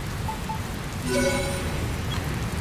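A short bright jingle chimes.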